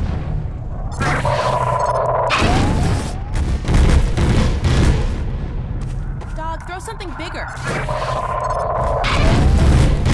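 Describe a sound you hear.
A weapon hums and crackles with electric bursts.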